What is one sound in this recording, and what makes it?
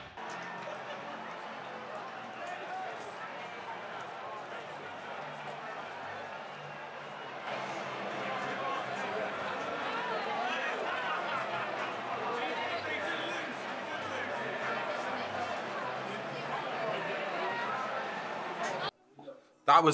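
A large stadium crowd cheers and chants loudly outdoors.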